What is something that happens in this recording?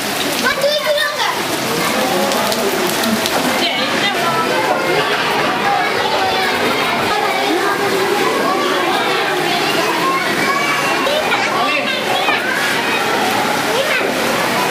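Rain falls steadily on flood water.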